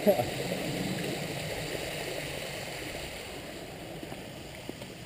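Water splashes steadily in a fountain nearby.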